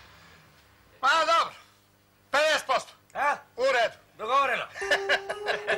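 An older man laughs loudly in bursts.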